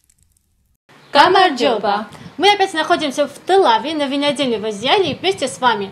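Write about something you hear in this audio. A young woman speaks calmly and clearly, close by.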